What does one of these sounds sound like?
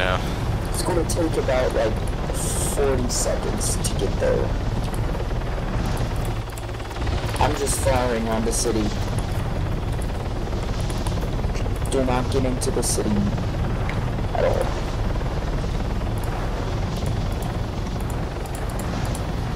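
A helicopter engine roars steadily with the thumping of its rotor blades.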